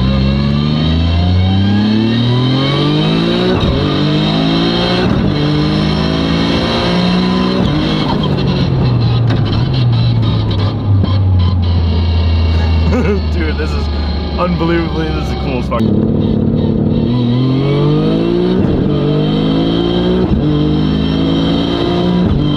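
A car engine revs hard, climbing through the gears again and again.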